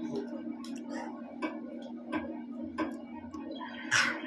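A young girl chews food.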